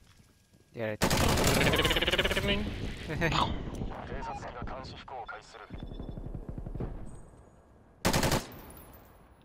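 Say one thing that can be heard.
Gunshots fire in quick bursts close by.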